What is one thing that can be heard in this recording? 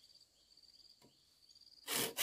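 A machete chops into a bamboo stalk with a sharp knock.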